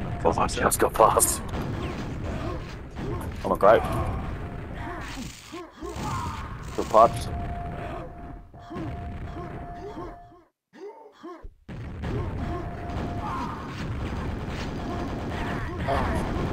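Game weapons fire with sharp blasts.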